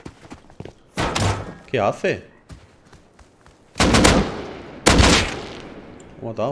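Gunshots bang loudly and echo.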